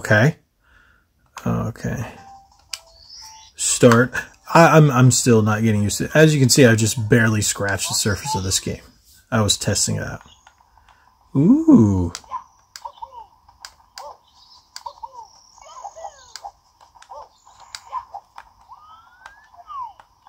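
Cheerful video game sounds and jingles play from a small speaker.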